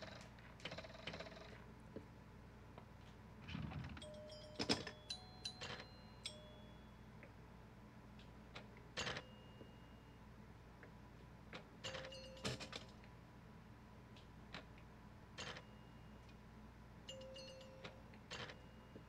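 A pinball machine plays short electronic chimes.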